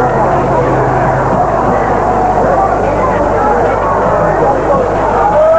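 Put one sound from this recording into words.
A crowd of people chatters and murmurs outdoors.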